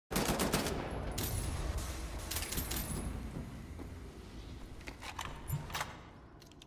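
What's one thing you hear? Heavy footsteps clank on a metal floor.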